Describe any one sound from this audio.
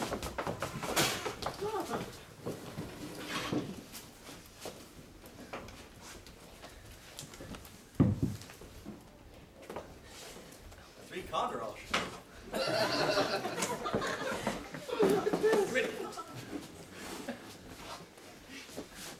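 Several adults talk and murmur nearby.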